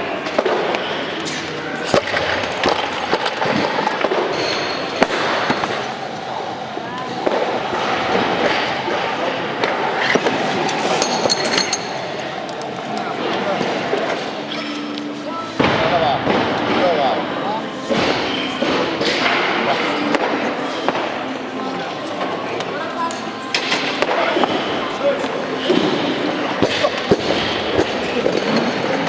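Barbell plates clank and rattle as a heavy weight is lifted.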